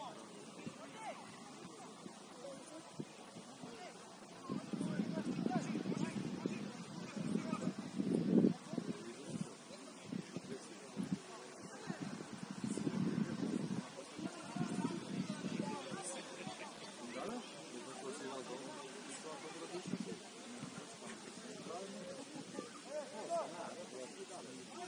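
Young players shout to each other across an open field in the distance.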